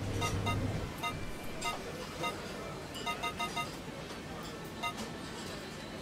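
Short electronic beeps sound in quick succession.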